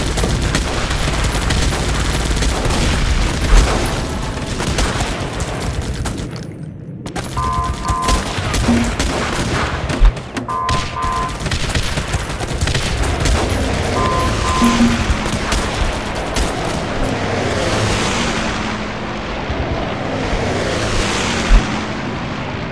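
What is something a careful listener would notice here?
Explosions boom and rumble repeatedly.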